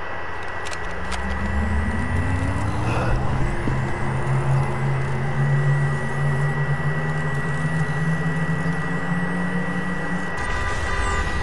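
A machine hums with a slowly rising whine.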